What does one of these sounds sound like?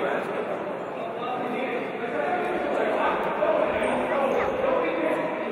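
Many people chatter at once in a large echoing hall.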